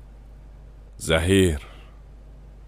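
A man speaks a short word loudly and close by.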